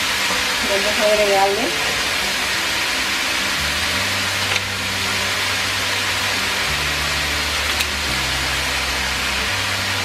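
Vegetables sizzle steadily in a hot pan.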